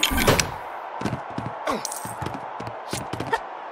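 Footsteps tap quickly on wooden floorboards.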